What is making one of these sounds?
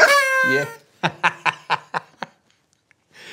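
A middle-aged man laughs in short bursts close to a microphone.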